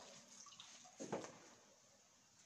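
Water splashes in a small bucket.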